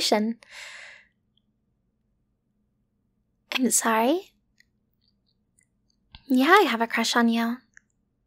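A young woman speaks softly and playfully, close to a microphone.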